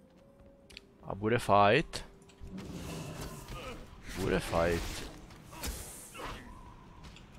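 Magic spell effects whoosh and crackle in a fight.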